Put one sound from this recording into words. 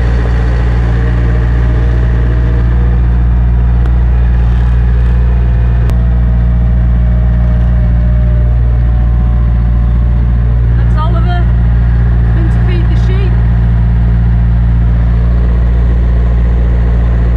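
A tractor engine drones loudly and steadily close by.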